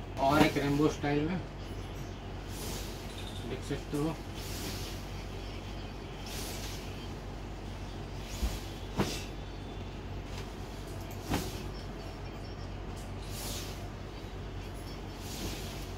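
Fabric swishes and rustles as cloth is flapped open.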